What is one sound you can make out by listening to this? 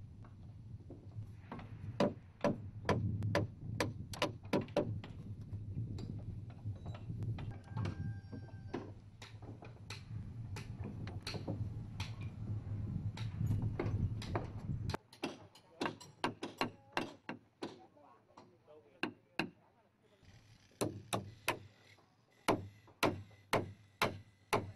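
A hammer strikes a chisel on wood.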